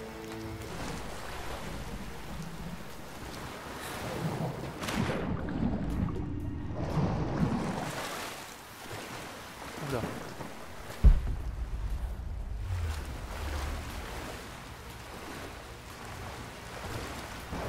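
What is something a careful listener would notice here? Water splashes as a person swims through it.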